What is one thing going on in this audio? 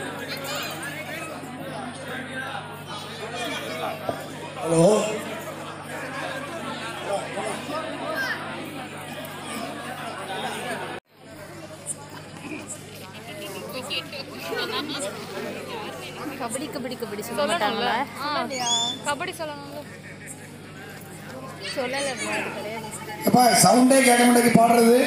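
A crowd of men chatters and shouts outdoors.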